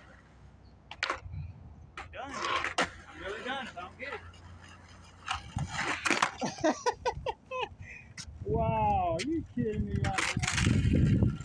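A skateboard clacks against the pavement.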